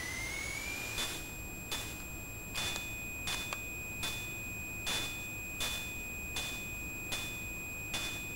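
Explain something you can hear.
A video game beeps in a regular pulsing rhythm.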